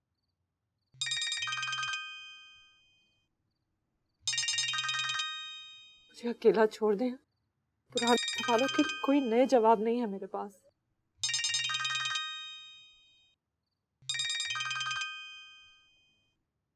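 A phone rings repeatedly.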